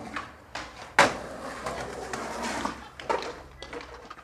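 Skateboard wheels roll across concrete.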